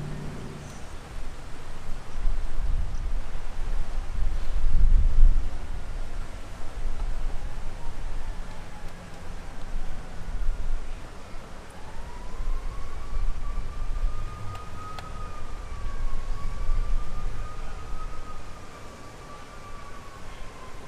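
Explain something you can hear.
A large crowd murmurs quietly outdoors.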